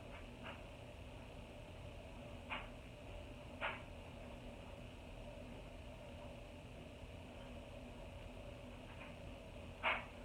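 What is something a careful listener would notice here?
A makeup brush taps and brushes softly against skin.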